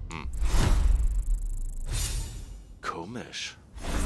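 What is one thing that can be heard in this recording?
A game's points counter ticks up quickly.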